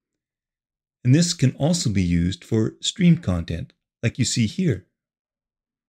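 An elderly man speaks calmly and clearly into a close microphone.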